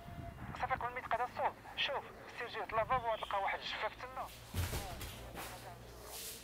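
A young man talks on a phone with animation, close by.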